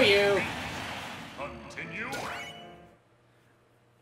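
A video game attack blasts with whooshing, ringing effects.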